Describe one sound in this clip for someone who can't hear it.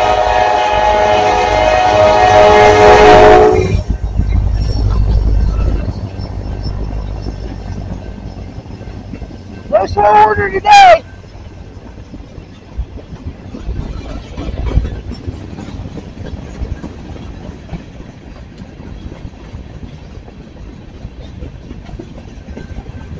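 A freight train rumbles past with wheels clattering on the rails.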